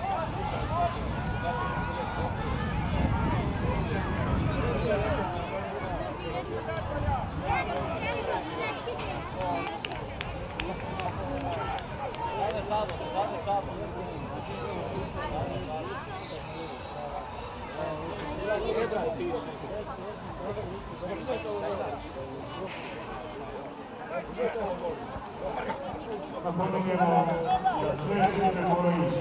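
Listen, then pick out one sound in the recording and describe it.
A crowd of spectators chatters and calls out nearby, outdoors.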